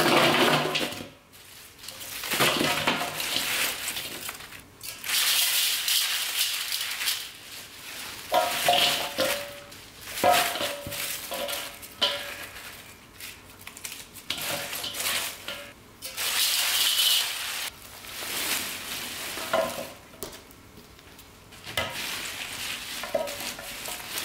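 Leafy greens rustle and crunch.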